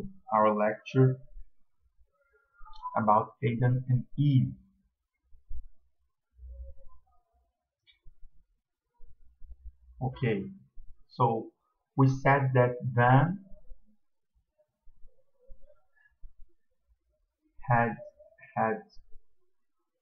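A young man talks calmly and close to the microphone, with pauses.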